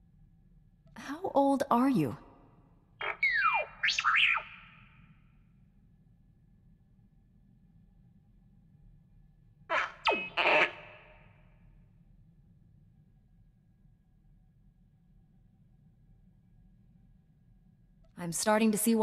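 A small robot chirps and warbles in bursts of electronic beeps.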